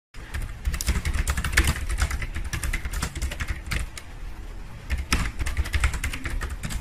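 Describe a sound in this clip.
Fingers type rapidly on a keyboard, with keys clicking and clacking.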